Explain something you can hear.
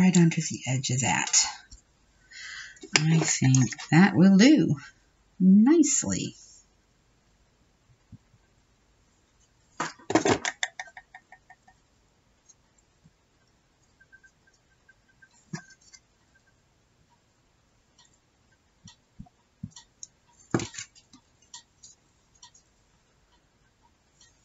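Paper crinkles and rustles as hands fold and press it.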